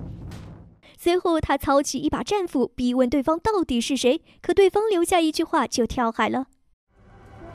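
A woman speaks with urgency, close by.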